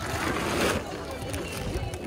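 A plastic sack rustles and crinkles close by.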